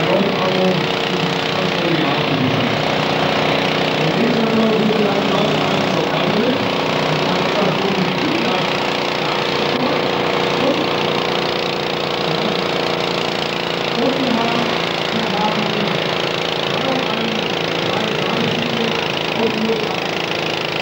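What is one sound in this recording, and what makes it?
A small tractor engine roars steadily nearby.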